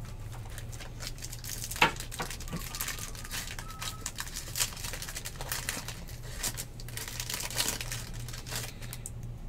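A plastic wrapper crinkles and tears as it is pulled open.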